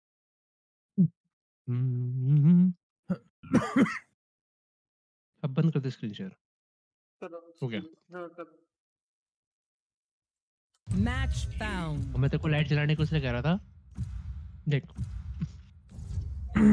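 A young man talks into a microphone in short bursts, with animation.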